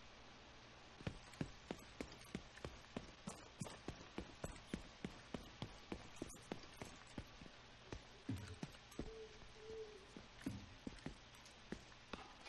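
Footsteps tread steadily on a hard surface.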